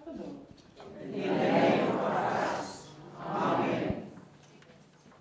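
A congregation speaks together in unison.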